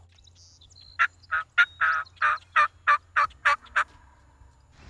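A wild turkey yelps in a quick series of calls.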